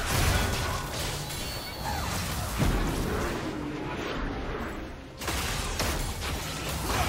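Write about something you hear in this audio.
Game hits and impacts thump repeatedly.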